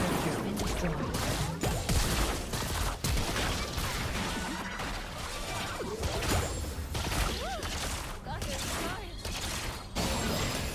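Game spell effects zap and crackle in a fast fight.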